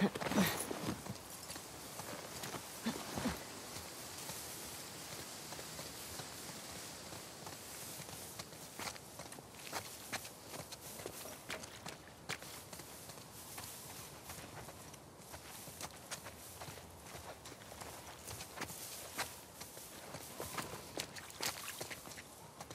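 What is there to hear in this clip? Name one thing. Footsteps rustle through tall grass and leafy bushes.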